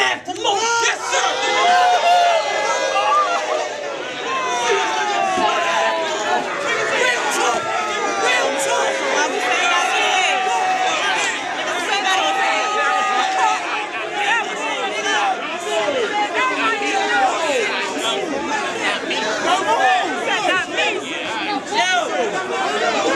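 A crowd of young men shouts and cheers loudly throughout.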